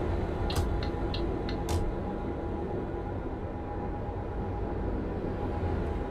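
A truck engine hums steadily while driving on a highway.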